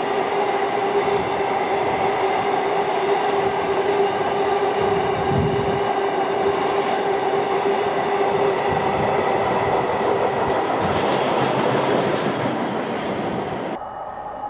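The wheels of a freight train squeal with a steady high whine.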